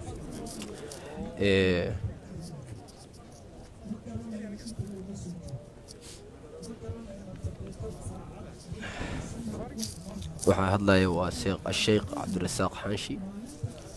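A crowd of men talks and murmurs close by outdoors.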